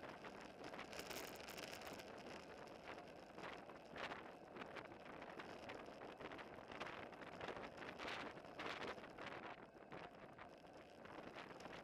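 Wind rushes and buffets loudly past, outdoors.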